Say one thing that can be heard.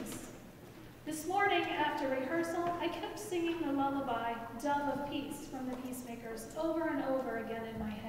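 A woman speaks clearly into a microphone in a large echoing hall.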